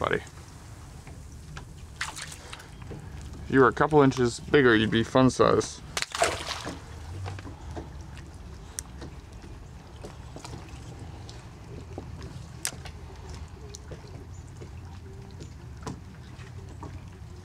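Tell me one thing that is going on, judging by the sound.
Water laps gently against a small boat.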